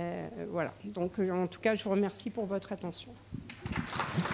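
An older woman speaks calmly through a microphone in a large hall.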